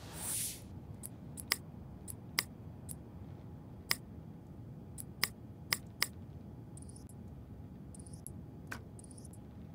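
Sharp menu clicks tick now and then.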